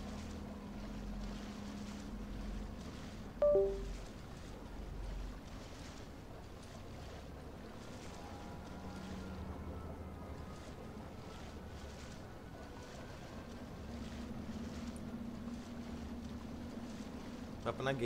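Water sloshes and splashes as a man wades through it.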